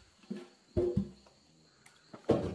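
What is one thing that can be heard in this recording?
Water pours and splashes into a bucket.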